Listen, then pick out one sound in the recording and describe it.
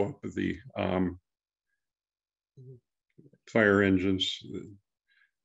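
A man speaks calmly over an online call.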